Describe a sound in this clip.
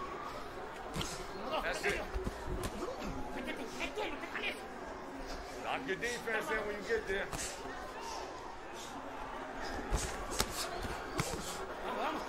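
Boxing gloves thud against a body in quick punches.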